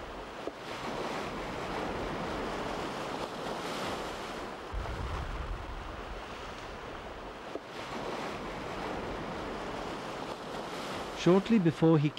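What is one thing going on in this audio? Small waves lap gently at the shore.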